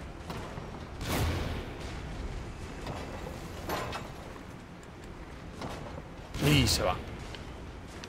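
Heavy weapon blows strike with loud thuds and clangs.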